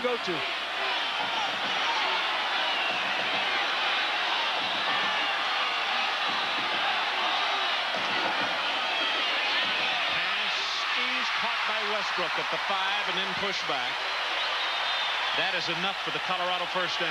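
A large stadium crowd roars loudly.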